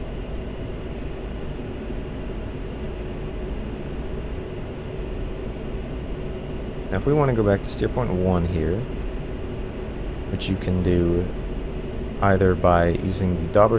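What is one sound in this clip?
A jet engine drones steadily from inside a cockpit.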